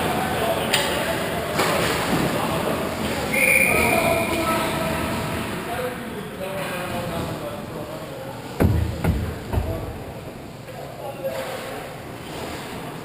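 Men call out to each other across the rink.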